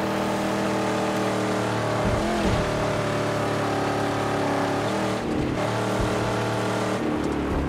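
A car engine roars steadily, rising and dipping in pitch as the car drives.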